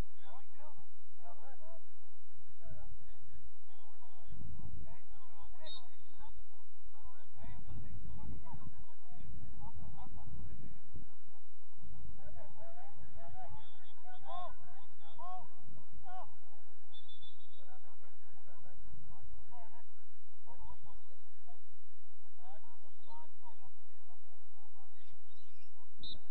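Players call out to each other across an open field in the distance.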